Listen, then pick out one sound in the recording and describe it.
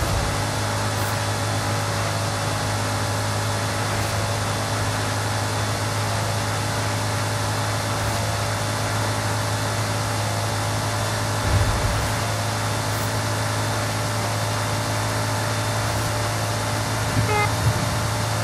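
Wind rushes loudly past a speeding car.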